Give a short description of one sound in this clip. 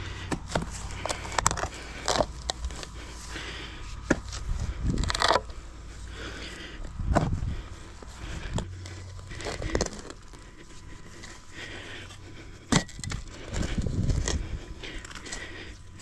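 Soil and roots tear as a spade levers up turf.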